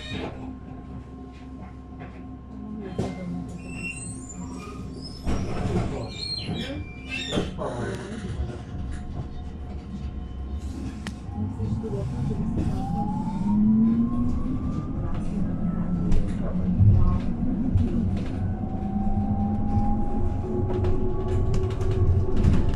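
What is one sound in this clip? An electric bus hums steadily nearby.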